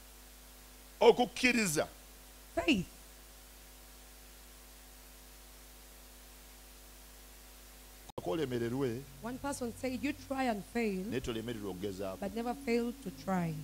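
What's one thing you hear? A man preaches with animation into a microphone, heard through loudspeakers.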